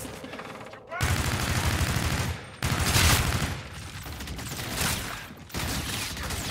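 Gunfire bursts rapidly, loud and close.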